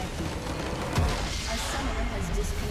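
A large structure explodes with a booming crash.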